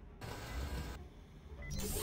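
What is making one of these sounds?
A control panel beeps as a hand presses it.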